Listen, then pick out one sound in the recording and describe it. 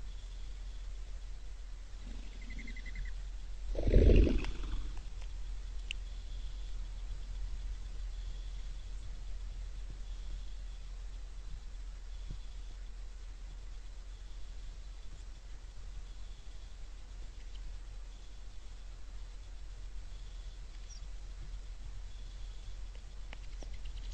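Small birds peck and scratch at seed on the ground.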